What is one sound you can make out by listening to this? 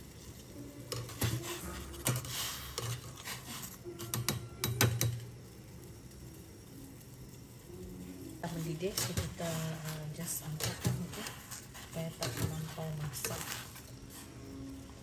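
A wire strainer scrapes and clinks against a metal pot.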